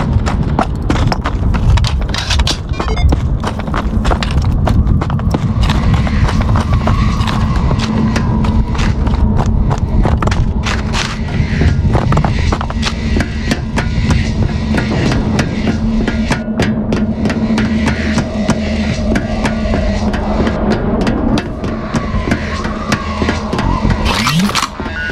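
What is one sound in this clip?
Footsteps thud quickly and steadily on hard ground and metal.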